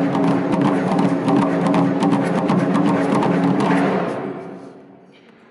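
Large drums pound in a fast, loud rhythm outdoors.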